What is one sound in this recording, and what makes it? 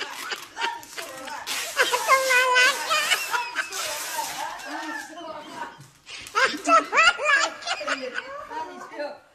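A young woman shrieks and cries out close by.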